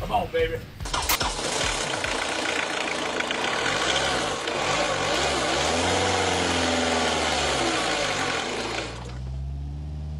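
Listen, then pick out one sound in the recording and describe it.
A diesel engine starts up and runs loudly with a rough clatter.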